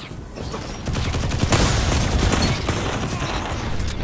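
An explosion roars loudly.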